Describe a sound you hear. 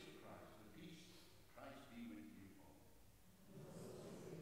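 An elderly man speaks with animation through a microphone in a large echoing hall.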